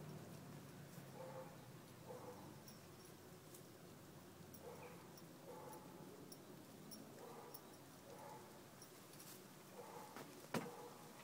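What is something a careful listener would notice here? A horse tears and munches grass close by.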